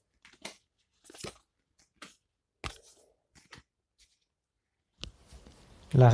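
Playing cards are dealt softly onto a table.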